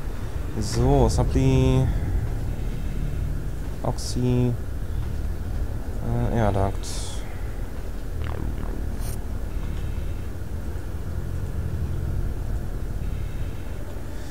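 A low steady machine hum drones throughout.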